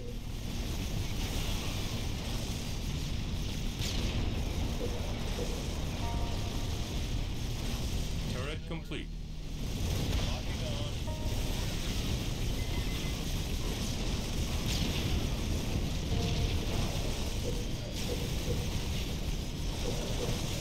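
Gunfire and explosions crackle from a battle between small vehicles and soldiers.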